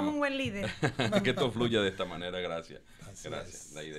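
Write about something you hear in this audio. A man laughs heartily into a microphone.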